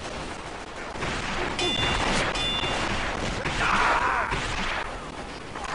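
A weapon blasts with a rushing hiss.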